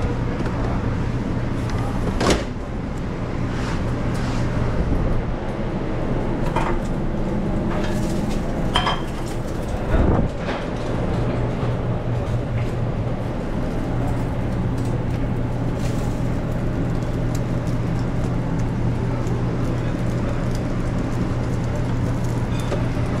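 Metal utensils clink against steel containers.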